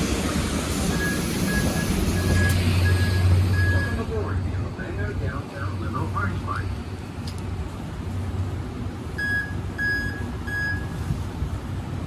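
A bus door chime beeps repeatedly.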